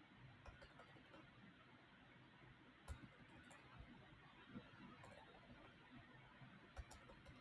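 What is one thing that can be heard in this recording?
Computer keyboard keys click sparsely, close by.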